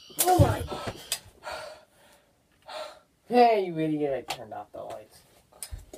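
A teenage boy speaks loudly and with animation nearby.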